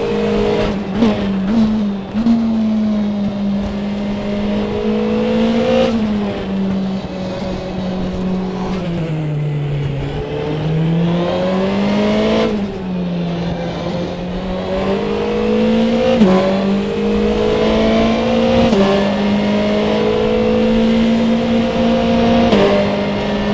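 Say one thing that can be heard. Gear changes cut the engine note with sharp clicks.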